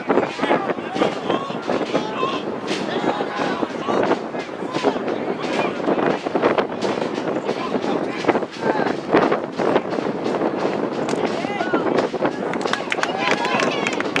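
Lacrosse sticks clack against each other.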